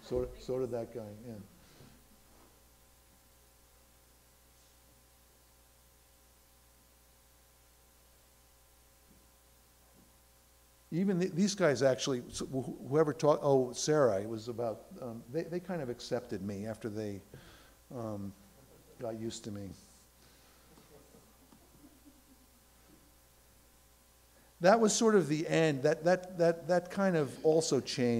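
An elderly man speaks calmly into a microphone, heard through a loudspeaker in a large room.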